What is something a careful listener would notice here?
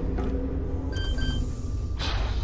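An electronic keypad beeps briefly.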